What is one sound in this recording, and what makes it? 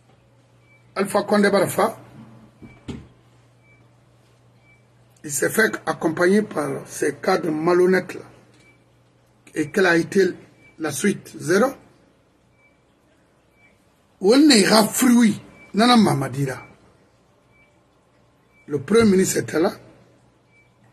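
A middle-aged man speaks with animation in short bursts over an online call.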